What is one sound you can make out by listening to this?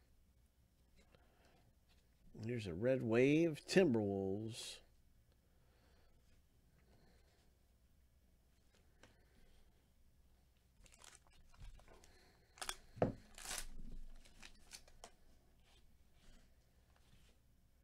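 Trading cards slide and flick against each other in a person's hands.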